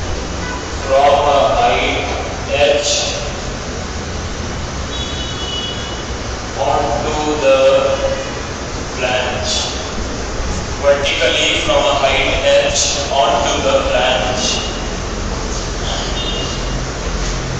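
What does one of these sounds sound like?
A young man speaks calmly through a clip-on microphone.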